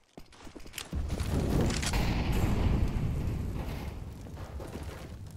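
A rifle fires loud bursts of shots.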